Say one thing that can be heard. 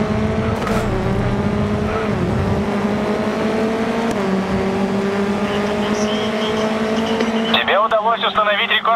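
A racing car engine drones steadily, climbing in pitch and dropping briefly at each gear change.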